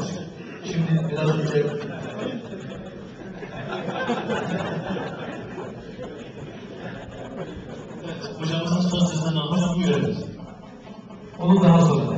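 A man chants melodiously into a microphone, amplified in a room.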